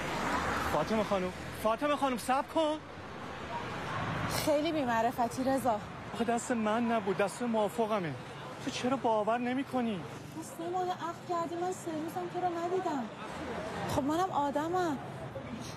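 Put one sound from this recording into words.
A young woman speaks with agitation nearby.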